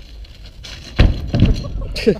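A bicycle lands hard on packed snow with a thud.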